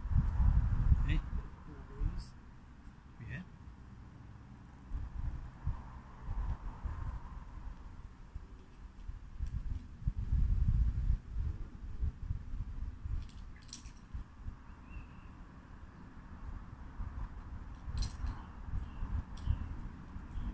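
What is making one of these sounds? Wind gusts outdoors, rumbling now and then.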